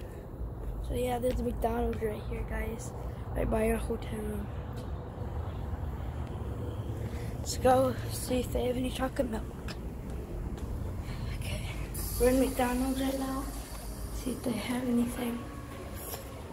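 A boy talks close to a phone microphone with animation.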